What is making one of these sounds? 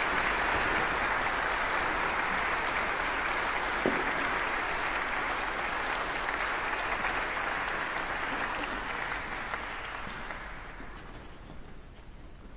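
An audience applauds in a large hall and the clapping fades away.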